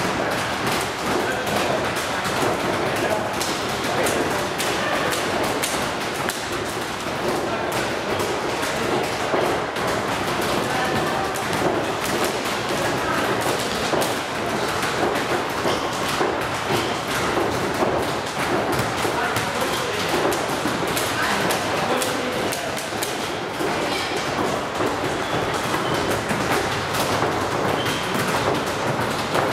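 Boys chatter and call out in an echoing hall.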